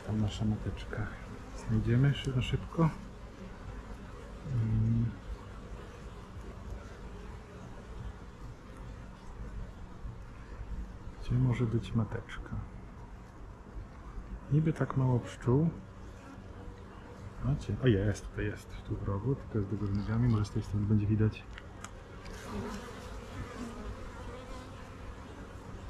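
Honeybees buzz in a steady hum close by.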